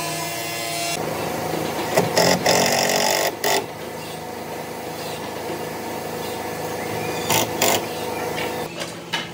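Metal bar clamps clank and rattle as they are tightened.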